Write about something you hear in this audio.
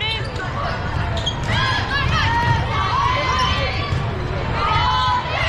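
Sneakers squeak on a hard court.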